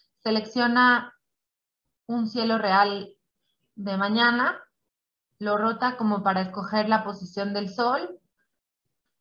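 A young woman speaks calmly through an online call.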